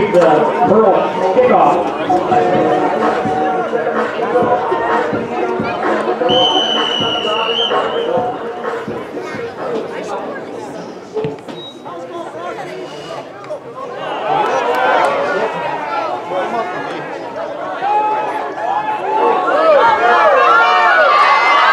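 Young male players shout and call out across an open field.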